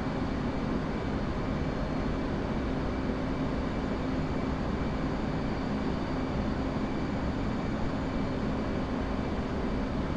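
A jet engine roars steadily inside a cockpit.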